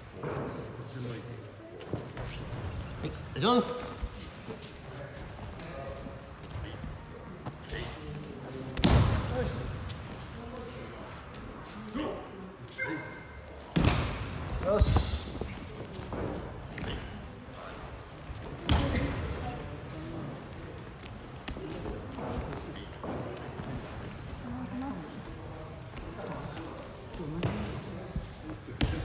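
Bare feet shuffle and slap on a mat.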